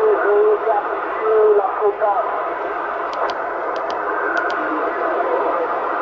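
A radio receiver hisses with steady static.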